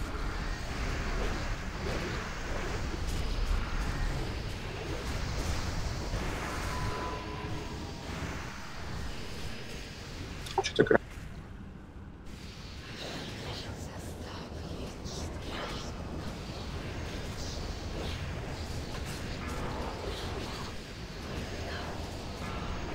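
Spell effects crackle and whoosh in a game battle.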